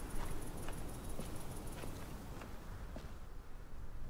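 Footsteps thud slowly on hollow wooden boards.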